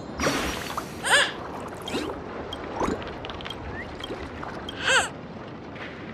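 A small cartoon bird chirps brightly.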